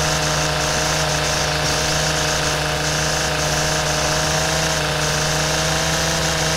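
A string trimmer motor whines steadily.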